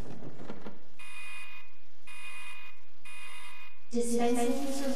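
A machine beeps in short repeated bursts.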